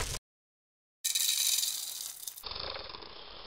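Roasted coffee beans clatter into a metal drum.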